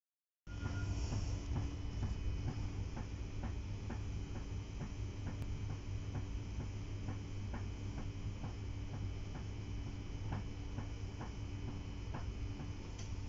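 Train wheels click in a steady rhythm over rail joints.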